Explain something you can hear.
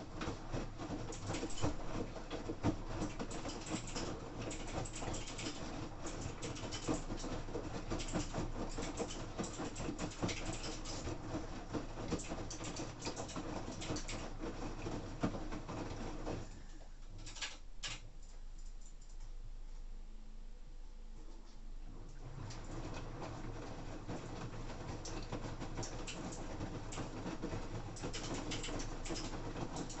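Wet laundry thumps and swishes inside a turning washing machine drum.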